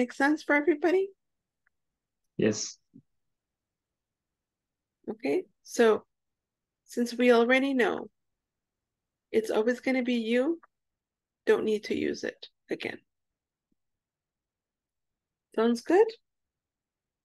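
A woman speaks calmly and slowly over an online call, with pauses.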